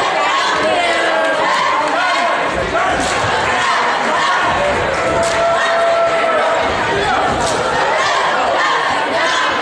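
A crowd of spectators chatters and cheers loudly in an echoing gym.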